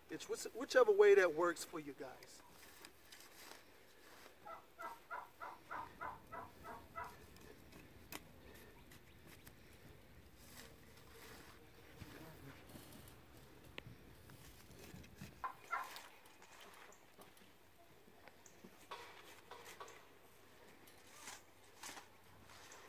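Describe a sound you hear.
A hoe scrapes and chops through loose soil.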